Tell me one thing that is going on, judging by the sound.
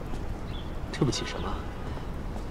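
A young man asks a short question close by.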